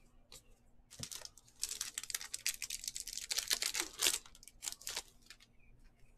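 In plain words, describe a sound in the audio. A foil wrapper crinkles and tears loudly.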